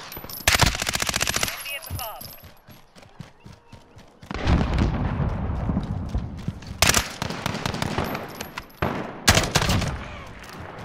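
Rapid bursts of automatic gunfire ring out close by.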